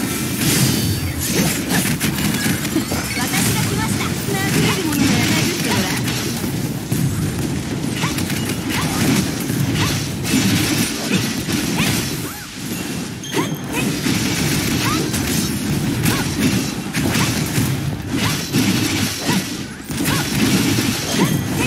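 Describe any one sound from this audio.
Rapid game combat hits and explosions blast and clash.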